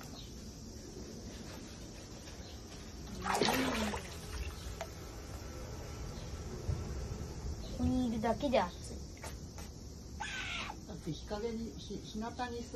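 Water splashes and sloshes as a small animal swims close by.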